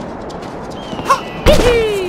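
A short springy jump sound effect plays.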